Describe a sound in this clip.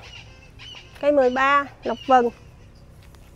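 A young woman speaks briefly and brightly close by.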